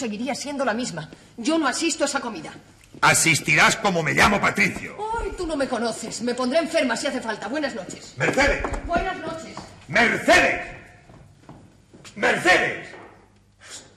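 A middle-aged man speaks with emotion nearby.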